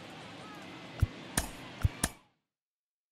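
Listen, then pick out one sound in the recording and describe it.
Game menu clicks sound in quick succession.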